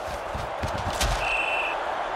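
Football players collide in a tackle.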